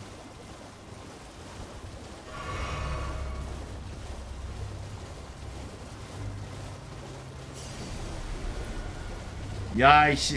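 Hooves splash quickly through shallow water.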